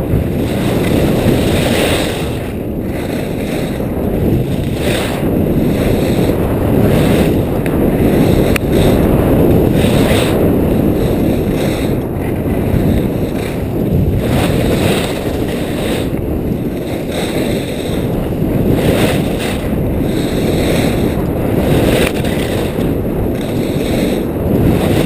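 Wind rushes past at speed, buffeting the microphone.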